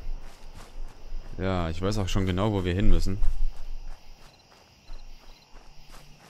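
Footsteps rustle through dry grass.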